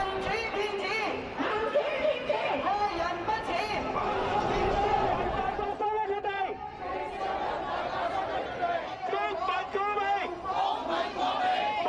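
A crowd of protesters chants and shouts slogans outdoors.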